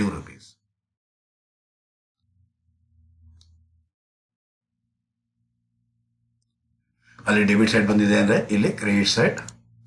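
A man speaks calmly and clearly into a close microphone, explaining.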